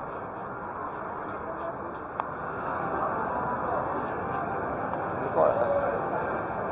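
A crowd of men and women murmurs and chatters in a large, echoing hall.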